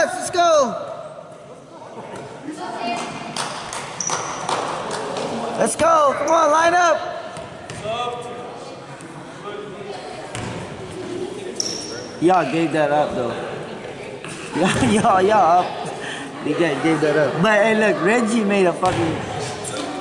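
Sneakers squeak sharply on a hard floor in a large echoing gym.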